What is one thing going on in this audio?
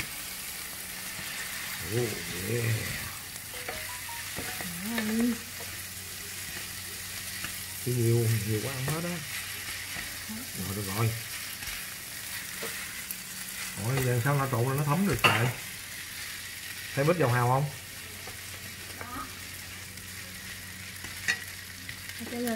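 A wooden spatula and chopsticks scrape and clatter against a pan.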